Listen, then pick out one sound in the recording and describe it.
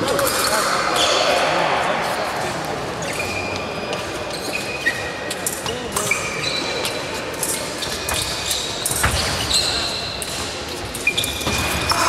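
A fencer's footsteps sound on a piste in a large echoing hall.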